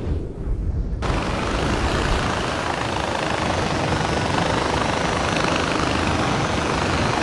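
A pulley whirs and hisses steadily along a zipline cable.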